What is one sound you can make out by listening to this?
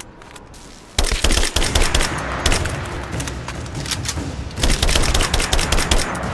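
A rifle fires rapid, loud bursts of shots.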